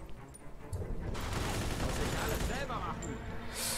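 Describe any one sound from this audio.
A submachine gun fires rapid bursts nearby.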